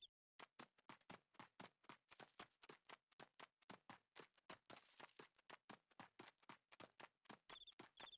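Footsteps crunch quickly and steadily over dry ground.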